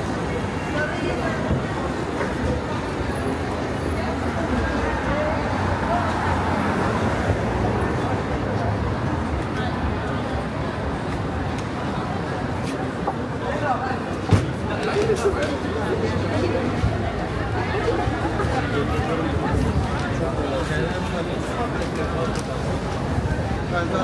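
Traffic hums steadily along a street.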